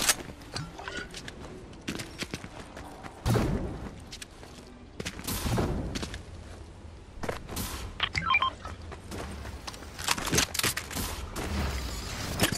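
Footsteps thud quickly over hard ground.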